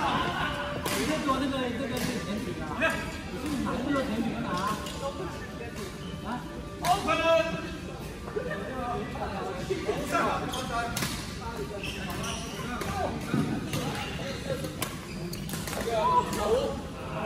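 Badminton rackets smack shuttlecocks with sharp pops.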